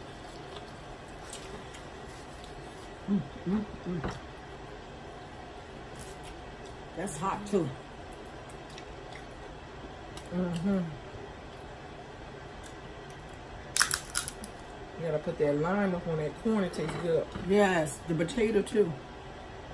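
A woman crunches and chews food.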